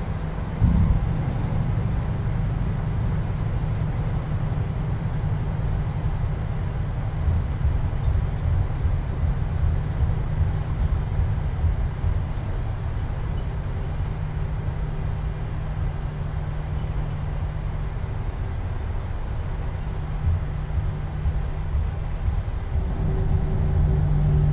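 The engines of a twin-engine jet airliner rumble low as the airliner rolls down a runway.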